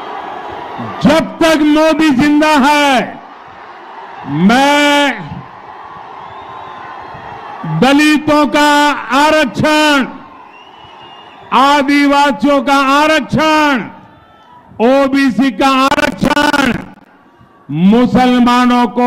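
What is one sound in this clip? An elderly man gives a forceful speech over loudspeakers, shouting.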